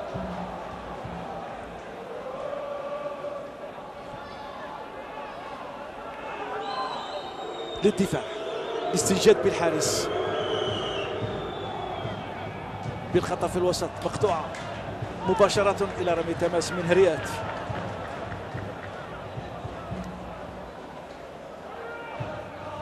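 A crowd murmurs steadily in an open stadium.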